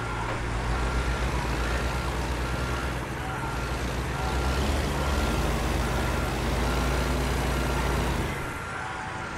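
A heavy truck engine rumbles low and steady, then drops away.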